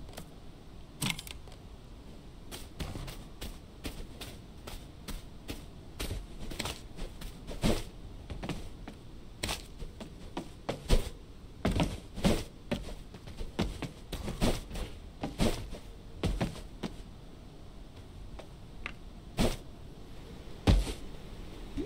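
Footsteps thump quickly across a wooden floor and stairs.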